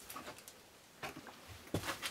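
Footsteps thud on a wooden plank floor.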